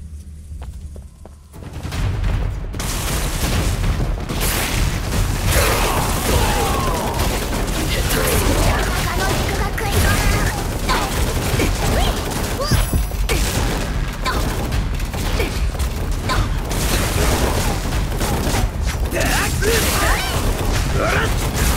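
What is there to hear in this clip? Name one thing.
Blades slash through the air.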